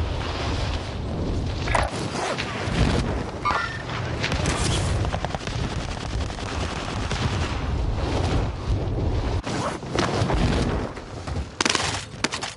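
Wind rushes loudly during a fast fall through the air.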